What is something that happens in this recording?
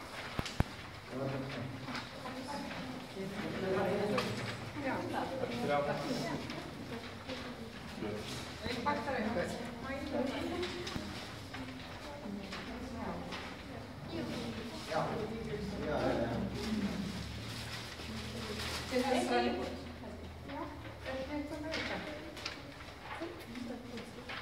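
A choir of men and women sings together.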